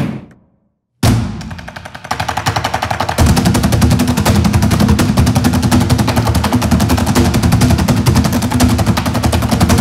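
Drumsticks beat a fast, steady rhythm on upturned plastic tubs in a large echoing hall.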